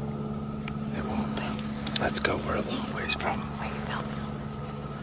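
Clothing rustles and brushes close by.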